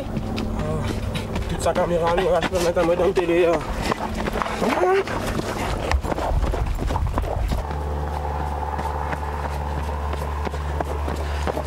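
Footsteps thud on a dirt trail.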